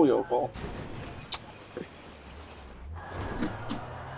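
A car crashes and tumbles against a wall.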